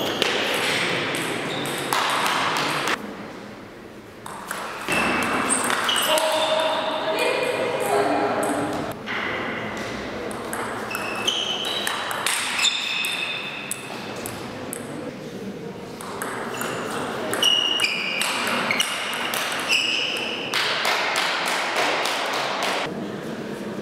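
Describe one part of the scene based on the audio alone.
A table tennis ball clicks back and forth off paddles and the table in a rally.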